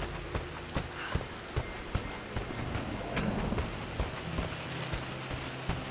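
Footsteps tread steadily across a wooden floor.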